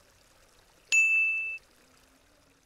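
A bright chime rings once.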